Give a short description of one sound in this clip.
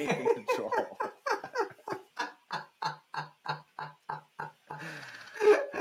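An older man laughs loudly and heartily over an online call.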